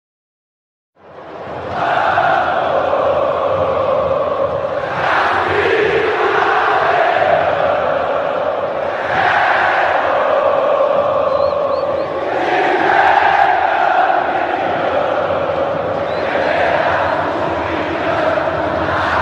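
A huge crowd sings and chants loudly outdoors.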